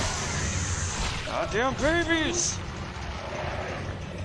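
A creature shrieks and snarls while grappling.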